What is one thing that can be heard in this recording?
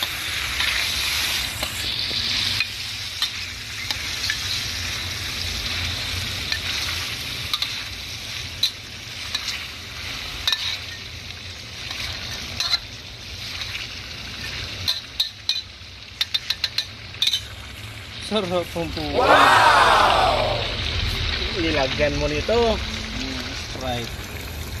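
Meat sizzles in a hot pan.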